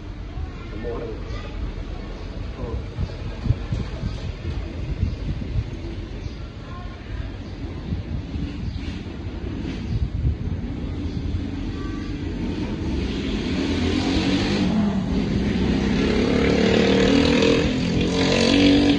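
Metal tools scrape and click softly inside an ear, close by.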